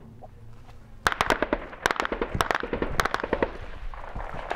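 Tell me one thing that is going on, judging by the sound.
Rifle shots crack loudly outdoors.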